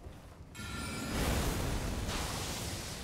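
Magic blasts burst with a whoosh.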